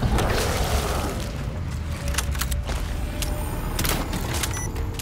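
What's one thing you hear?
A large creature growls deeply and loudly.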